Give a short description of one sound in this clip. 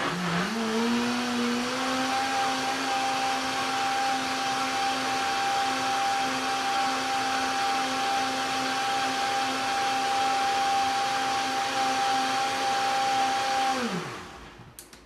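A blender motor whirs loudly and steadily, then winds down.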